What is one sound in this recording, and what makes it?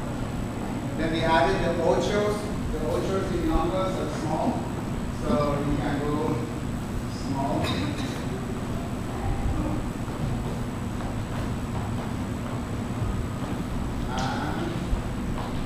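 A man speaks calmly to a group in a large room.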